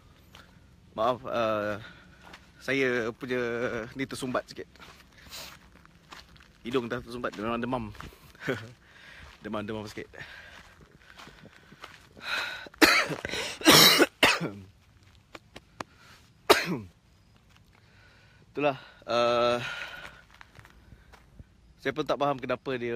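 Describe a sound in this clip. A young man talks close to the microphone in short bursts.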